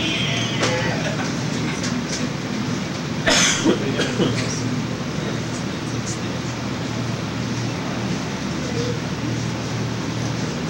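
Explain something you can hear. A man sings into a microphone through loudspeakers in an echoing hall.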